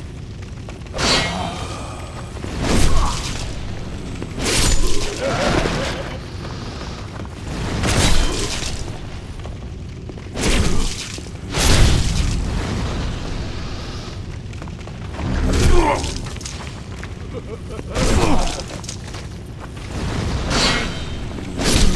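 A sword swings and strikes flesh in repeated heavy blows.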